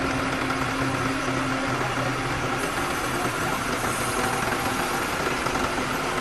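A crane's hydraulics whine as a load is lifted.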